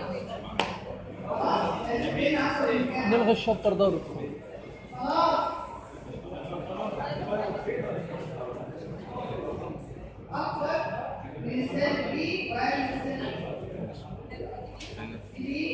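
A woman speaks calmly and steadily nearby, in a room with some echo.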